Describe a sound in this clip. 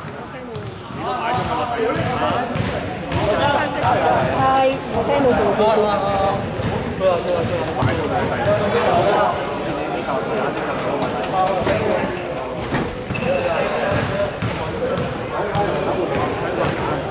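Men call out and talk in a large echoing hall.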